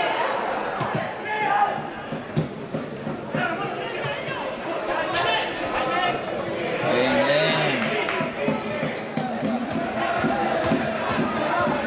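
A crowd of spectators chatters nearby outdoors.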